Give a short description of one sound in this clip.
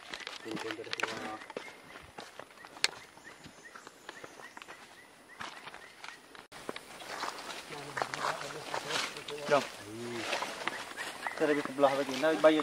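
Footsteps crunch and rustle through dry leaves.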